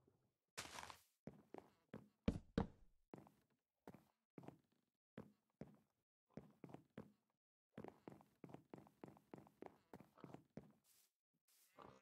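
Footsteps thud steadily across wooden boards.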